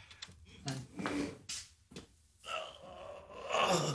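An older man groans in pain.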